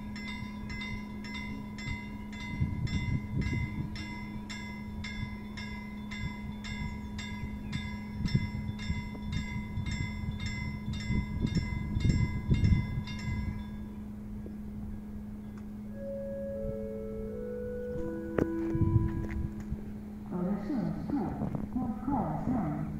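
A train rumbles and hums along the rails.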